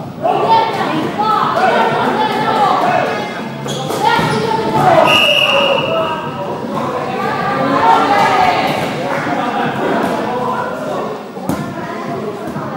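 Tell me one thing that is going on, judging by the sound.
Children shout and call out with excitement in a large echoing hall.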